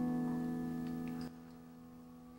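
A woman sings a long, high held note in an echoing hall.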